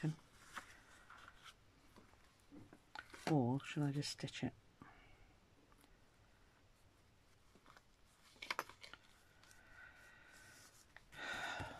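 Paper rustles and crinkles as it is folded and handled.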